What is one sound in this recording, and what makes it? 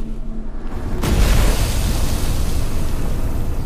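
A huge explosion booms and roars.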